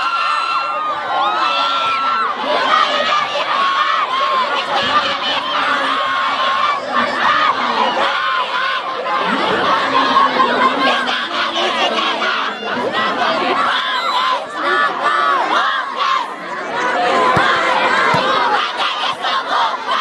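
A large outdoor crowd chatters, cheers and shouts throughout.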